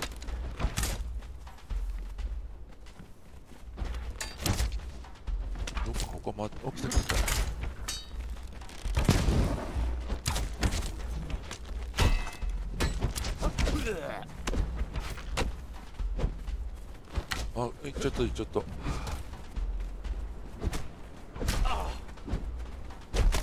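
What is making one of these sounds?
Footsteps thud on wooden planks and stone.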